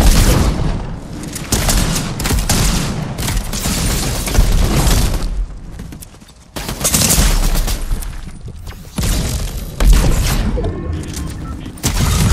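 A pickaxe whooshes and strikes.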